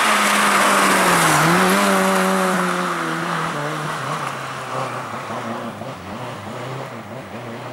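A rally car engine changes pitch as the car passes, then fades away into the distance.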